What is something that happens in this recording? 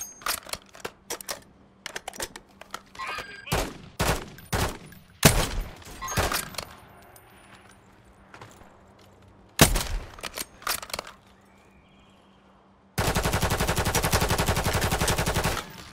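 A rifle bolt clicks as it is worked back and forth.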